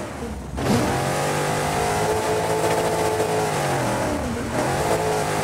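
A rally car engine roars at high revs, dipping briefly between gear changes.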